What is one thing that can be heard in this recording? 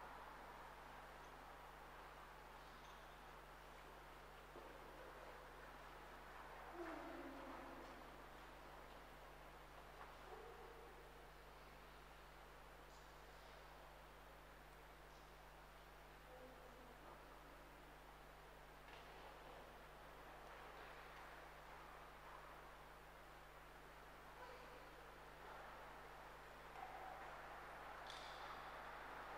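A man speaks quietly at a distance, echoing in a large hall.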